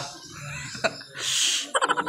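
A young man laughs close to a phone microphone.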